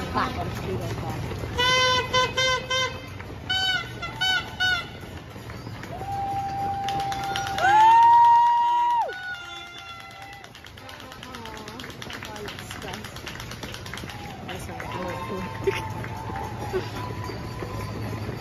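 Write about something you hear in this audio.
Many runners' footsteps patter on a road.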